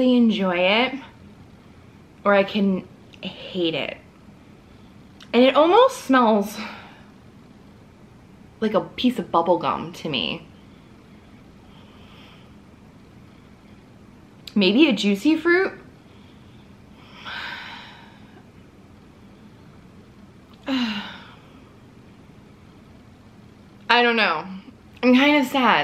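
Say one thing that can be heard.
A young woman talks close to a microphone in short, animated bursts.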